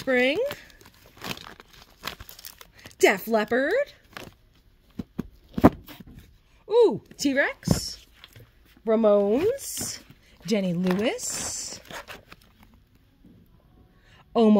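Plastic-sleeved records rustle and clack as they are flipped through by hand.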